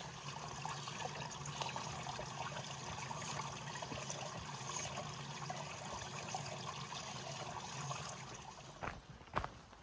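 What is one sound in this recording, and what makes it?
A small stream trickles over rocks.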